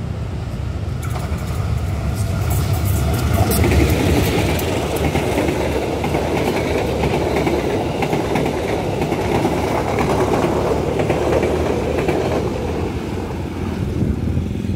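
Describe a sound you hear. A train's wheels clatter loudly on the rails as it passes close by.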